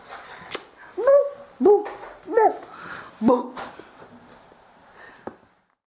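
A toddler babbles close by.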